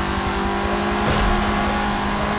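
Two cars bump against each other.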